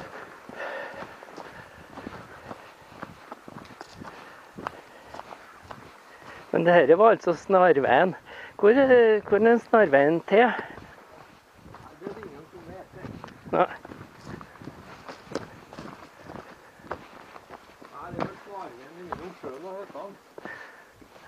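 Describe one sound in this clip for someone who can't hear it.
Footsteps crunch on a dirt trail close by.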